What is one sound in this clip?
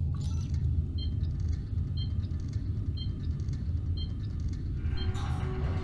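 An electronic device beeps at a steady, even pace.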